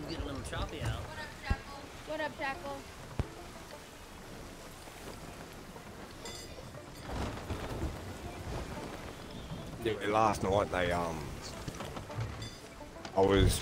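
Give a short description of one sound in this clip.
Stormy sea waves surge and splash around a wooden ship.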